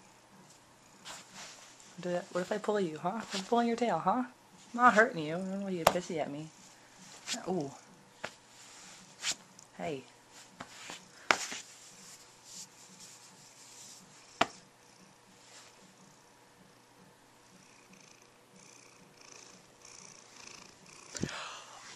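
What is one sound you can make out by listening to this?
A cat purrs steadily close by.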